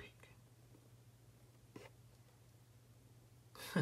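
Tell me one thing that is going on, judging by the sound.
A plastic lid clicks open.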